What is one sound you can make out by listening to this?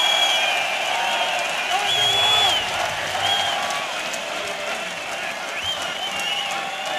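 A large crowd cheers and whistles in a big echoing hall.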